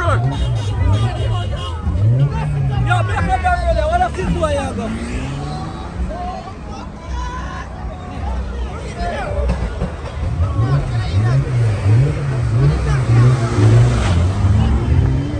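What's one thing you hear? A car engine revs hard, rising and falling repeatedly.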